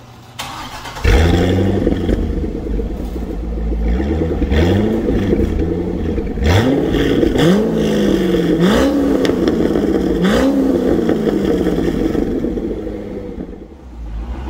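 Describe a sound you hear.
A sports car engine starts with a loud burst and idles with a deep rumble.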